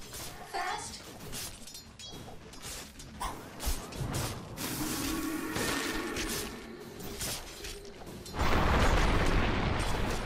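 Video game spell effects and weapon clashes ring out in a busy fight.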